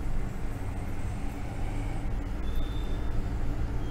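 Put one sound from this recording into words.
A metal spoon taps against a metal bowl.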